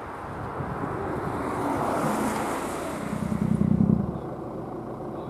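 A car drives past at speed, rising and then fading.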